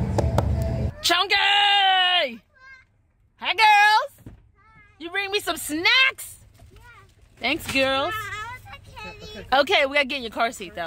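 A little girl speaks in a high, excited voice close by.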